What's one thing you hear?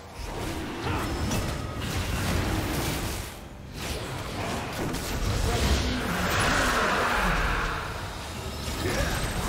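Game spell effects crackle and burst during a fight.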